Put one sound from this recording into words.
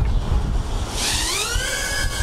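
Small drone motors whine and rise in pitch as they spin up.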